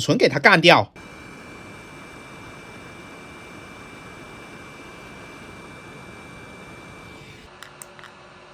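A hot air blower hisses steadily close by.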